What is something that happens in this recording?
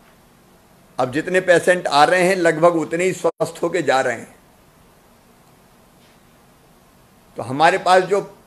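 A middle-aged man speaks firmly into a microphone, in short bursts with pauses.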